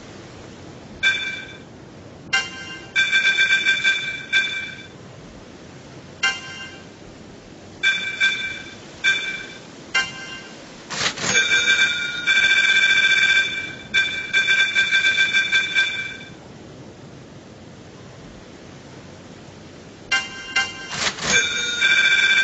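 Short electronic menu beeps chime repeatedly.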